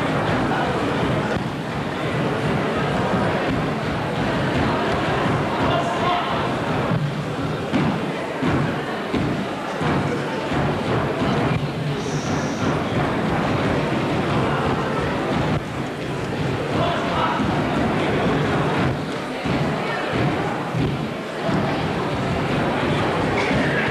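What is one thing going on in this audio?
Dancers' feet stamp and shuffle on a wooden stage.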